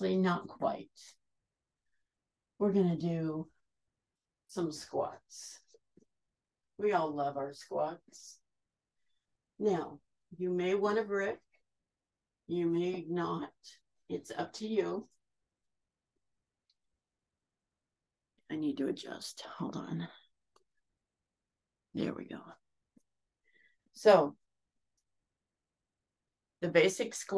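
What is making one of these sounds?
A woman speaks calmly in short phrases, heard through an online call.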